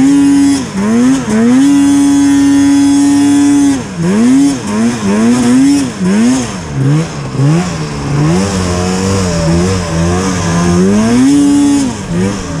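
A snowmobile engine roars loudly close by, revving up and down.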